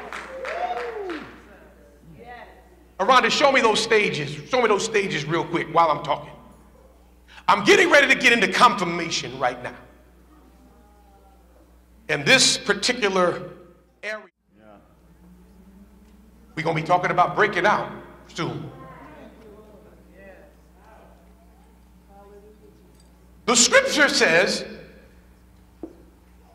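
A man preaches with animation into a microphone, in bursts with pauses, in a large echoing hall.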